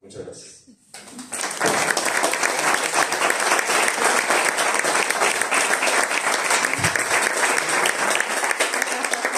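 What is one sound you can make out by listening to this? A small audience applauds steadily.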